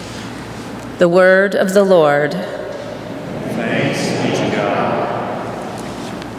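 A woman sings into a microphone in an echoing hall.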